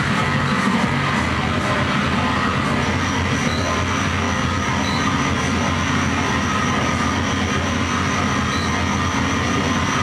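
A crowd murmurs and shouts in a large, echoing room.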